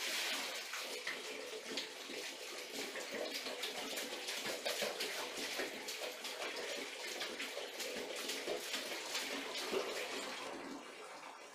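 Water splashes as a small child slaps it in a tub.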